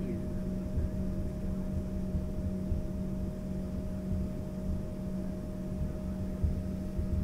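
Aircraft wheels rumble over the taxiway.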